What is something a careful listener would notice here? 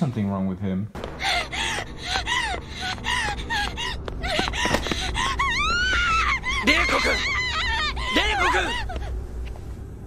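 A young man cries out in anguish through a loudspeaker.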